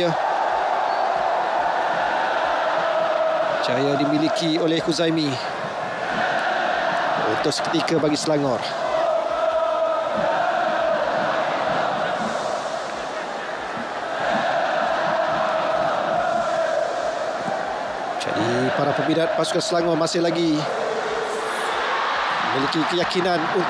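A large crowd chants and roars steadily in an open stadium.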